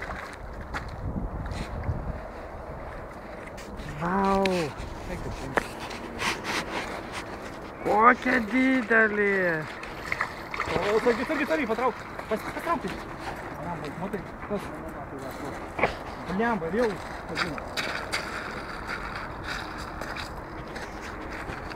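Small waves lap gently against a pebble shore.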